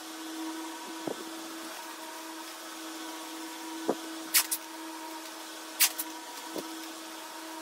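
Newspaper rustles and crinkles.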